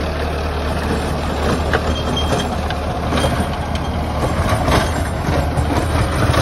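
A tractor engine rumbles steadily close by.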